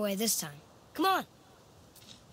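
A boy speaks calmly and close by.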